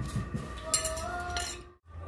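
A fork scrapes on a plate.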